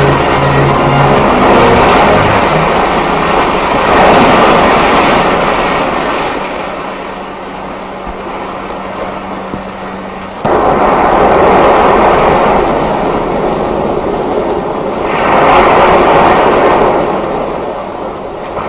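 Heavy surf crashes and roars against rocks.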